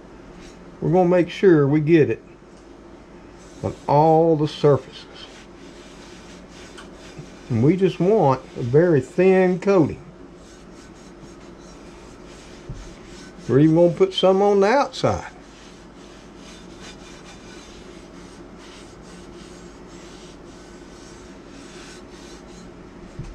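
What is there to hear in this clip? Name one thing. A cloth rubs against a cast iron pan.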